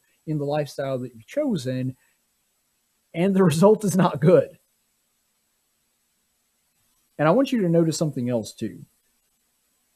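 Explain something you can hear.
A young man speaks with animation, close into a microphone, in short bursts with pauses.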